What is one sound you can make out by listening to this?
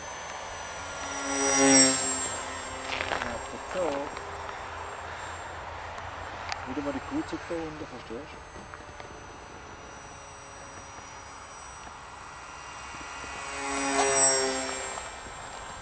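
A model glider whooshes past close by in the air.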